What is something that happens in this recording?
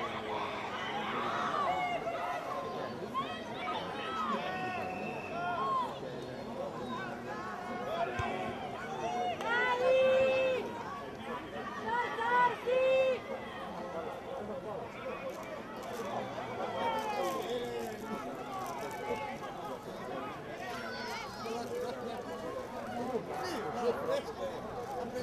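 Children shout and call out to each other across an open field.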